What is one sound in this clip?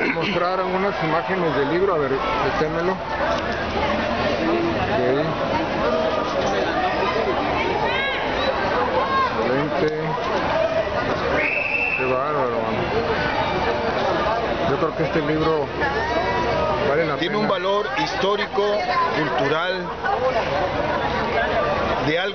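People chatter in the background outdoors.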